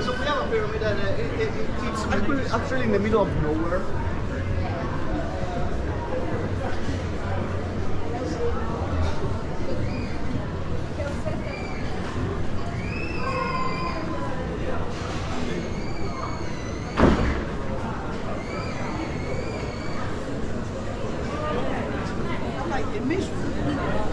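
Footsteps scuff on cobblestones.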